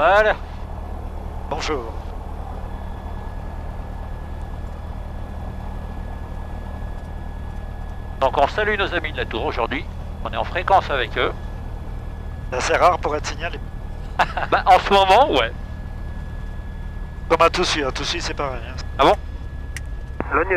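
An aircraft engine drones steadily in the cabin.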